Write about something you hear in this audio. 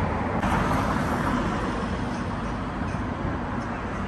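A car drives past on the street.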